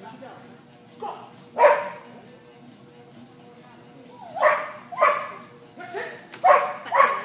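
A dog barks loudly in a large echoing hall.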